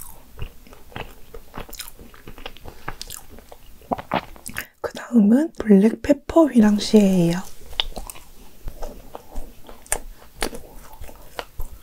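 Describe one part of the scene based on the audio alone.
A young woman chews wetly close to a microphone.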